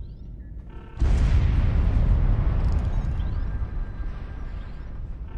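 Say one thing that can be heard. A heavy explosion booms and rumbles away.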